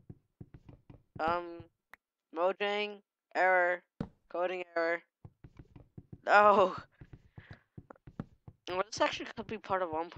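Soft, quick thuds of blocks being struck and broken repeat throughout.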